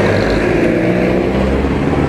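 A jeepney engine idles close by.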